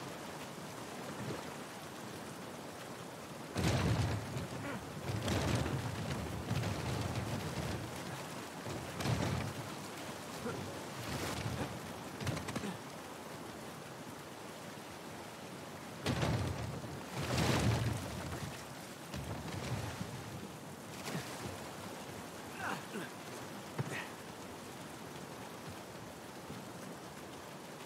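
Water rushes and splashes nearby.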